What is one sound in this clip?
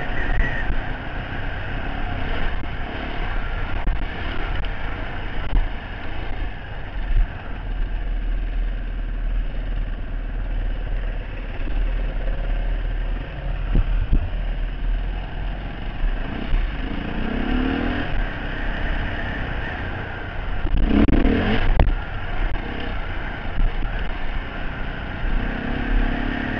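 A dirt bike engine drones and revs up close.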